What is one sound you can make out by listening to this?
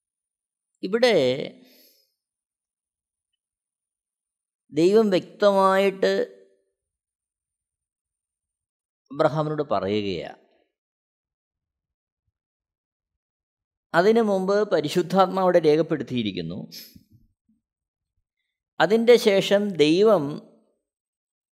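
A middle-aged man reads aloud calmly into a close microphone, with long pauses.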